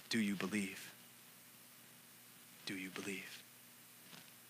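A man speaks calmly into a head microphone, in a reverberant hall.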